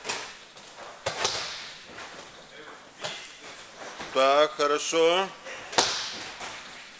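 Bodies thud onto padded mats in an echoing hall.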